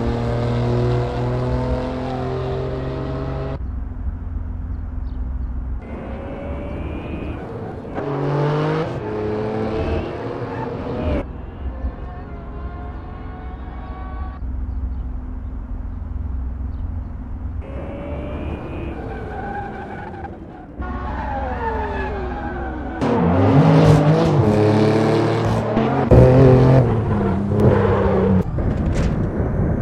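A racing car engine roars and revs up and down.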